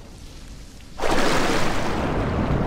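A body plunges into water with a sudden splash.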